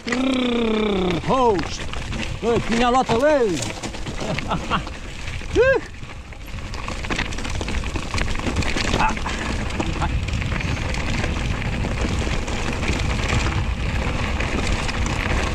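Bike tyres crunch and rattle over loose gravel.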